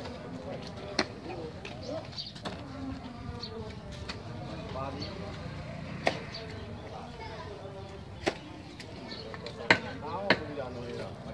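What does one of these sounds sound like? A metal hoe strikes wet soil in sharp knocks.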